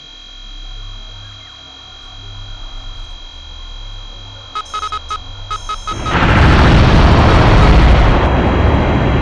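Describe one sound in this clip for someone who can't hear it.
A laser beam hums steadily.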